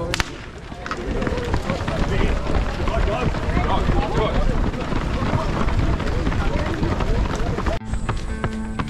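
Footsteps shuffle on a road as a group moves off.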